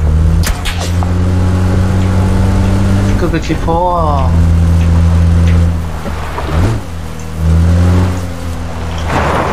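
An off-road car engine drones and revs while driving over rough ground.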